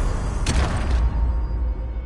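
A heavy armoured body crashes to the ground with a loud, booming thud.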